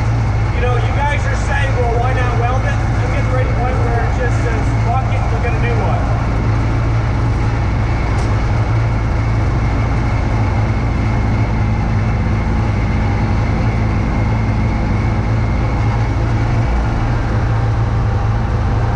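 Snow sprays and hisses from a snowblower chute.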